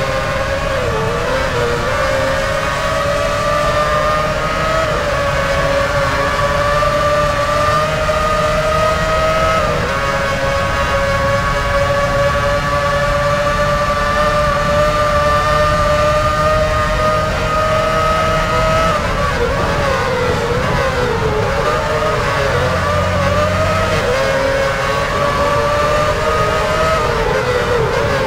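A racing car engine screams at high revs, rising through the gears.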